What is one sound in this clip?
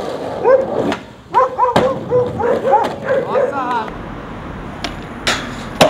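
A skateboard tail snaps and lands with sharp clacks.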